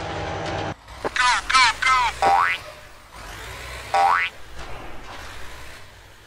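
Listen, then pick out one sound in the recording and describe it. A heavy truck engine rumbles low.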